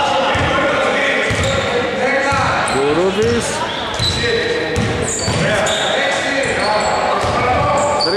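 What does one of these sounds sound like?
Men shout and call out across the hall.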